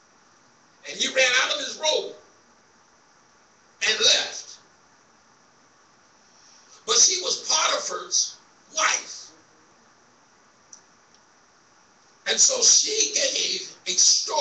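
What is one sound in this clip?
A man preaches into a microphone in short, emphatic bursts with pauses between, in an echoing hall.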